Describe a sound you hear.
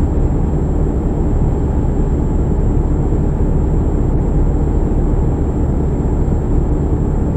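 A truck engine rumbles steadily as it drives along a highway.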